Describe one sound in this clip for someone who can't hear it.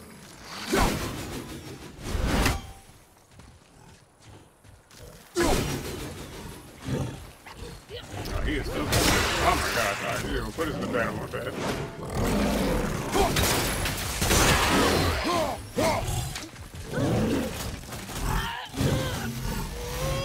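Weapons clash and thud in a video game fight.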